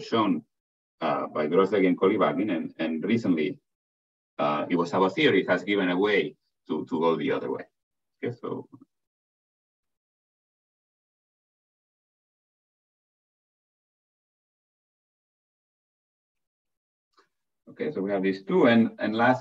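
A man lectures calmly through an online call, pausing now and then.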